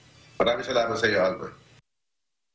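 An elderly man speaks calmly over a remote call.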